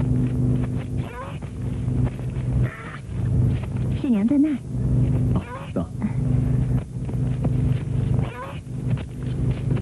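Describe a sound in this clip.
A young woman speaks briefly with animation.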